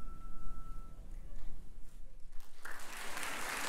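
A choir sings a final note.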